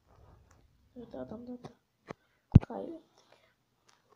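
A boy speaks close to a microphone.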